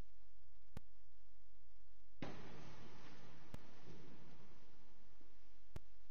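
Footsteps tap softly in a large echoing hall.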